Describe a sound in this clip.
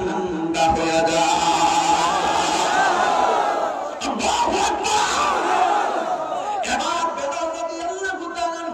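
A young man speaks with animation into a microphone over loudspeakers.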